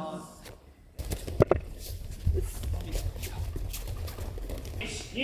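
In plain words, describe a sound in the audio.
Bare feet shuffle and thud on padded mats.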